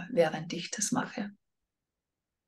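A middle-aged woman speaks calmly and softly into a nearby microphone.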